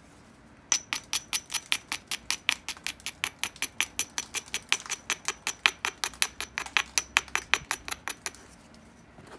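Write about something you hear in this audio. A tool taps and scrapes rapidly against stone, chipping off small flakes.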